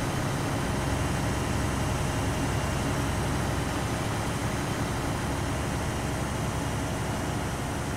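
A heavy vehicle engine rumbles steadily as it drives along a road.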